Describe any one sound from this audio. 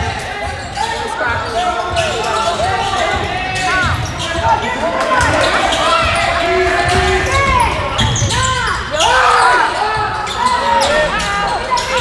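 Players call out to each other in a large echoing gym.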